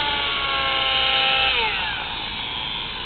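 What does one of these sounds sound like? A model helicopter's motor whines loudly, then drops in pitch.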